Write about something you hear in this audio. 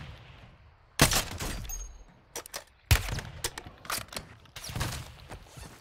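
Rifle shots crack loudly, each one followed by a short echo.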